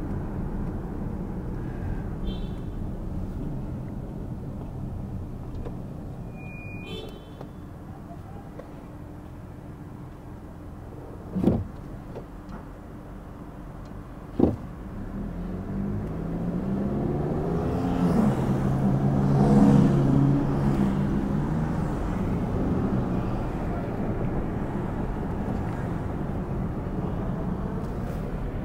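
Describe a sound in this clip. A car engine hums low from inside the car.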